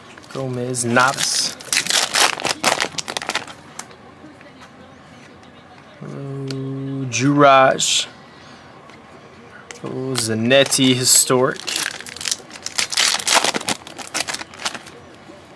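Foil wrappers crinkle and tear as card packs are ripped open.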